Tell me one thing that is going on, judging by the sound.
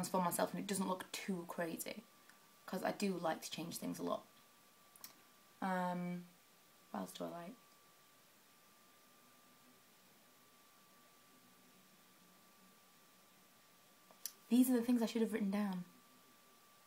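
A young woman talks close to a microphone, casually and with animation, with pauses.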